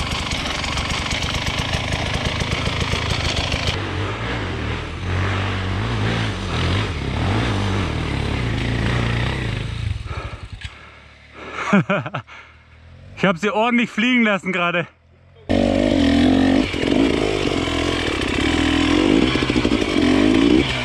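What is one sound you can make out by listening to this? A dirt bike engine idles and revs close by.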